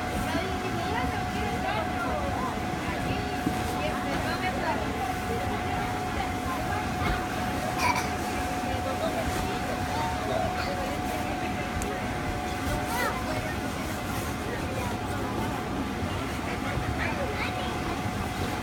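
Young girls chatter and squeal with high voices close by.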